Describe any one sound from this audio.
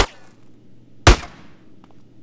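A single loud gunshot cracks.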